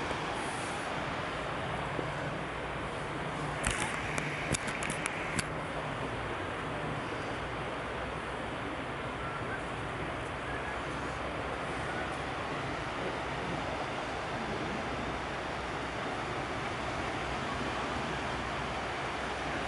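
Small waves wash gently onto a beach.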